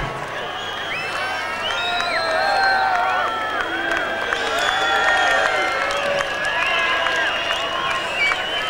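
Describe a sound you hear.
A large crowd cheers and whistles loudly in a big echoing hall.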